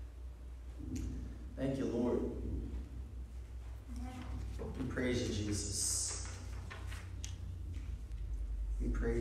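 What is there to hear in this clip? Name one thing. A man speaks into a microphone through loudspeakers in an echoing room.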